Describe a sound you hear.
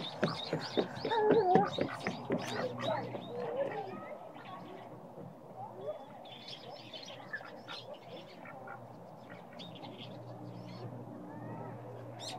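A domestic duck pecks at wet mud.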